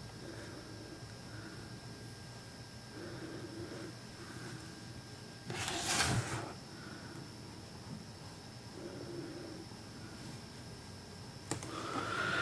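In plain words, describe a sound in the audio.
A paintbrush brushes softly across a canvas.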